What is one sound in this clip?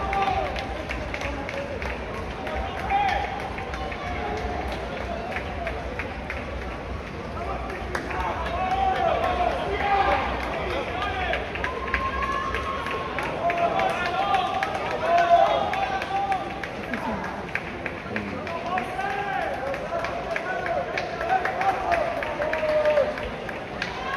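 A crowd of onlookers cheers and shouts outdoors.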